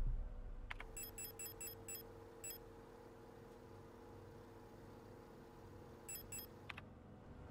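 Short electronic menu blips tick in quick bursts.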